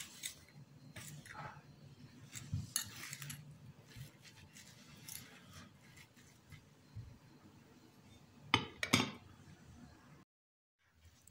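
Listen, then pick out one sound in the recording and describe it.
A spoon stirs and scrapes a crumbly mixture in a ceramic bowl.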